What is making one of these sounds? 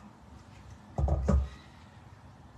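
A metal bowl is set down with a thud.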